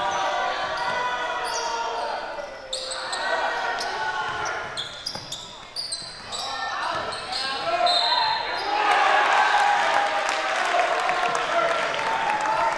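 A crowd of spectators cheers and chatters in an echoing gym.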